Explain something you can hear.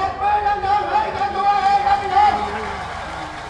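A large crowd sings or chants loudly outdoors.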